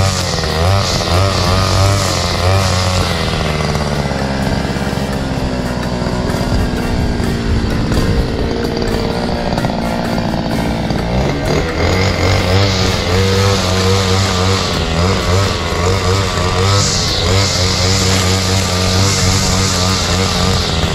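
A trimmer line whips through grass and weeds.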